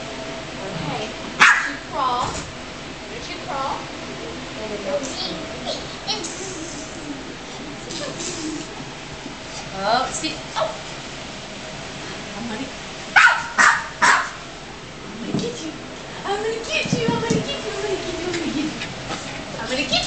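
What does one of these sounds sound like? A young woman talks playfully and encouragingly to a baby nearby.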